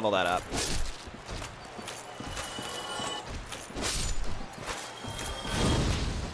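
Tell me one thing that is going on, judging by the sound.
Armoured footsteps shuffle over soft ground.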